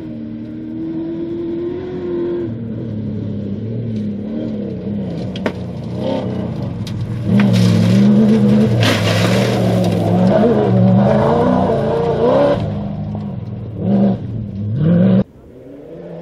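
A rally car's engine roars loudly as it races past.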